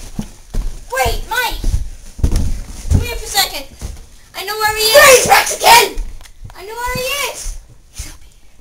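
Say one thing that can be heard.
A young boy shouts and talks excitedly close by.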